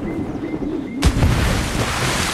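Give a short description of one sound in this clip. A body splashes hard into water.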